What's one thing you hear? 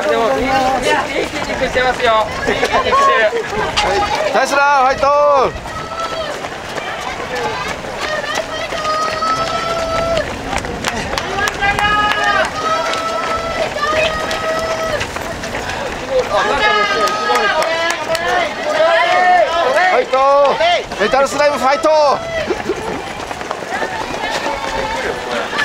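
A crowd of spectators cheers and calls out nearby.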